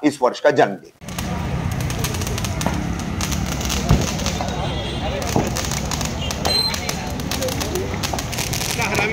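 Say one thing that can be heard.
A long string of firecrackers crackles and pops rapidly outdoors.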